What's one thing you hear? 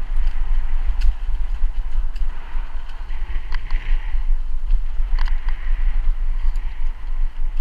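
Bicycle tyres thump over cracks in the path.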